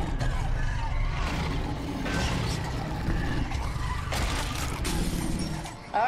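A large beast snarls and growls close by.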